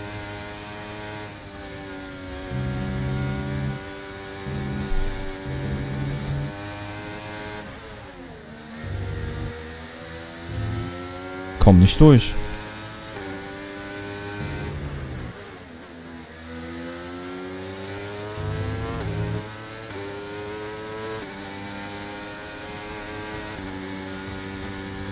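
A racing car engine whines loudly, rising and falling in pitch as gears shift.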